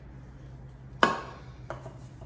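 A glass bottle knocks on a stone countertop.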